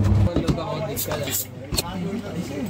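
A bottle cap pops off a glass bottle.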